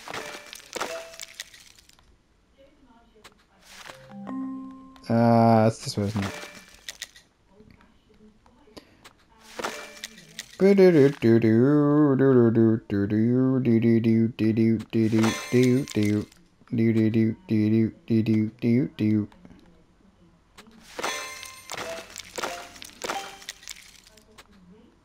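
Bright, sparkling chimes ring out in short bursts.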